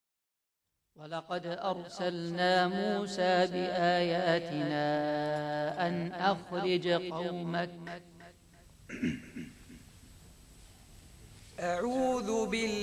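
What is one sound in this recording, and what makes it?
A young man recites in a melodic chanting voice through a microphone.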